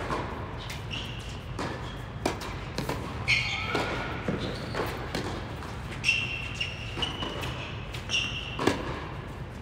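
Sneakers squeak on a hard court.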